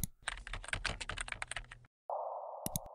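Keys on a keyboard tap quickly.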